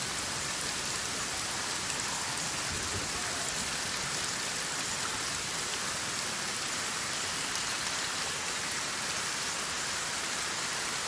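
Rain falls steadily on water.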